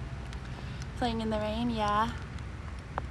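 A young woman speaks close by, in a playful sing-song voice.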